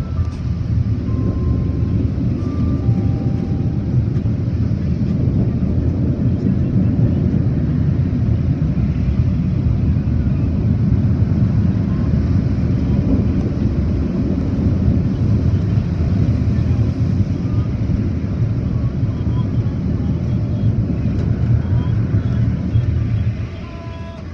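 Car wash brushes scrub and drum against a car with a low, heavy rumble, heard from inside the car.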